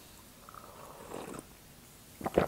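A woman sips a drink from a mug close to a microphone.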